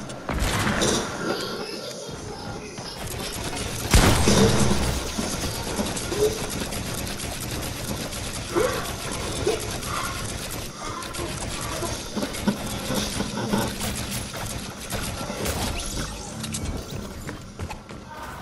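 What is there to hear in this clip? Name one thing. Building pieces clatter into place in quick succession.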